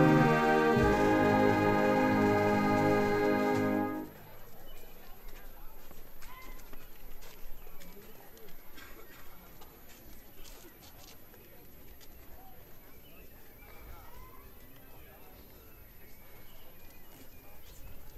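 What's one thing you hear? Footsteps shuffle quietly on paving outdoors.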